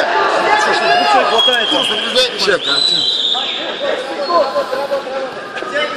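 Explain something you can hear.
A crowd of men shouts and cheers loudly close by, in an echoing hall.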